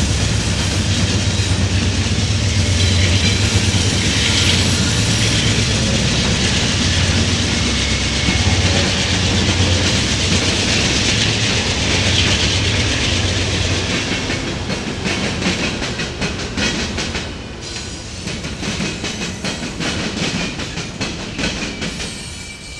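Metal wheels squeal faintly against the rails.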